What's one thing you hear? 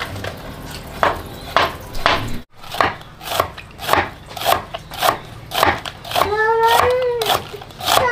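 A knife chops cabbage on a wooden board with quick, regular knocks.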